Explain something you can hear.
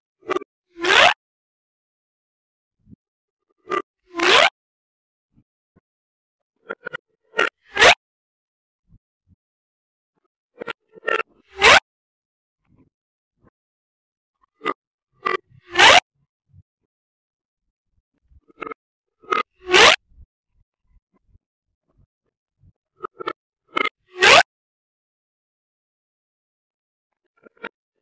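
Plastic pop tubes are stretched and squeezed, making quick bursts of popping and crackling.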